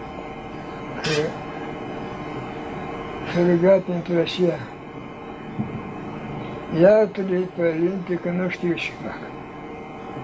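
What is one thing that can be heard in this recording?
An elderly man speaks slowly and softly, in short phrases, close by.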